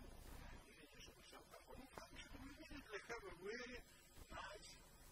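A man lectures calmly, heard through a microphone.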